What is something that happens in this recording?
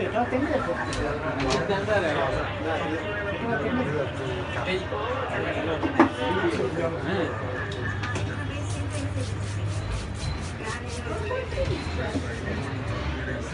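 Hands slap and pat a head quickly.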